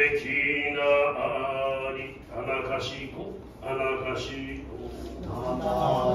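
An elderly man reads aloud in a slow, measured voice.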